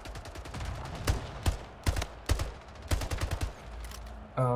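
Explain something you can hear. Rifle shots crack in quick succession.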